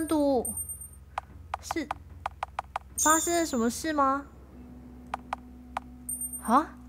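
Short soft blips tick as menu choices change.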